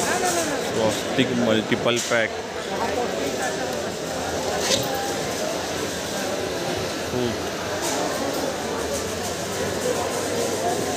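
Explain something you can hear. A crowd murmurs and chatters in a busy hall.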